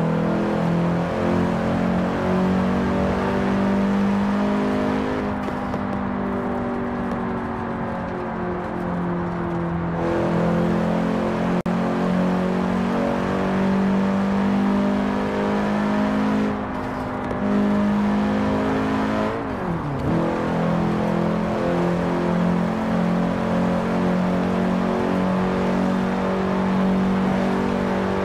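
A car engine hums steadily and rises in pitch as it speeds up.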